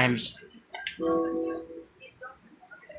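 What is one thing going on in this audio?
A short electronic chime rings out from a game.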